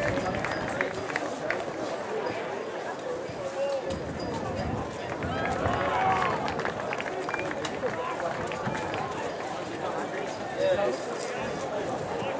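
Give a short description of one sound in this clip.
A large outdoor crowd of adults and children chatters and murmurs.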